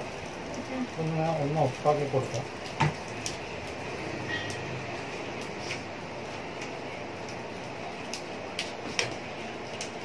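A metal spoon scrapes and taps in an aluminium pan.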